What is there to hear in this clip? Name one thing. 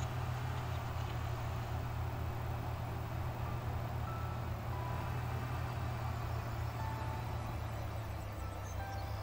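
A car engine hums steadily at low revs.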